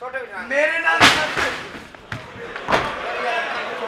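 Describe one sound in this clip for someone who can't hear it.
A man thumps down onto a hard floor.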